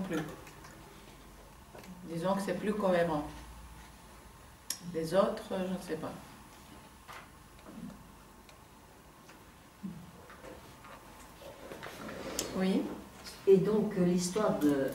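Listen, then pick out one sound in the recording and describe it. A woman speaks calmly nearby, with pauses.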